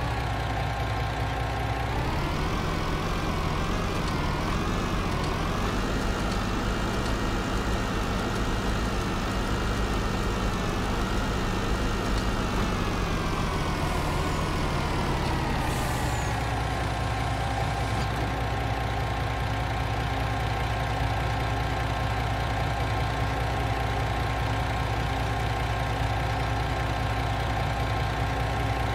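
A truck engine revs up, hums steadily, then drops back to a low idle.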